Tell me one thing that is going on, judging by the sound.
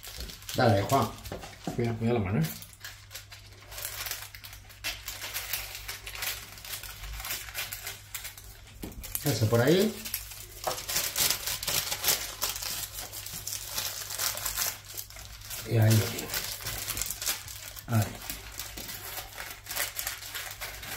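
Paper crinkles and rustles as it is folded.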